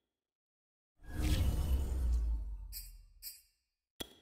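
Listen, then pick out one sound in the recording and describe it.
A deep rumbling whoosh swells and fades as a choice is confirmed.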